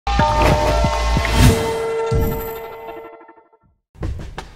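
A jingle plays.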